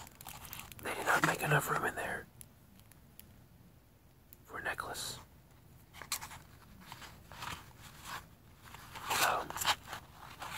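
Paper or a wrapper crinkles in a hand.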